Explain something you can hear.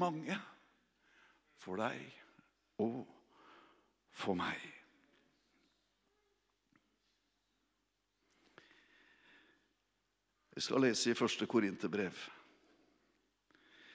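A middle-aged man speaks calmly into a microphone in bursts, with pauses.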